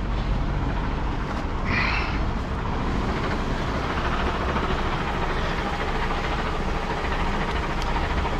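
Footsteps crunch on a dirt and gravel path.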